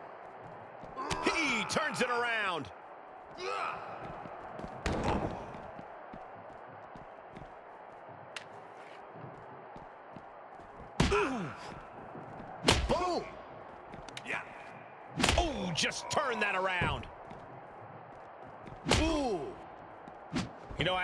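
Punches and slams thud as two wrestlers brawl.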